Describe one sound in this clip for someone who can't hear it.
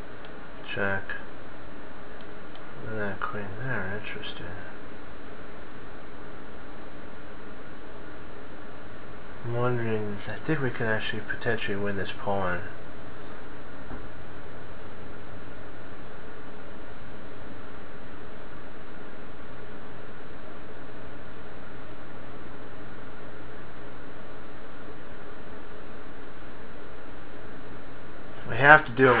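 A middle-aged man speaks calmly into a microphone, in short bursts with long pauses.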